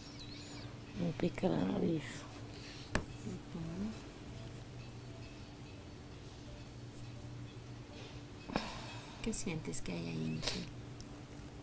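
A woman yawns loudly and groans close by.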